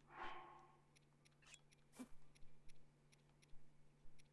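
Short game menu clicks tick one after another.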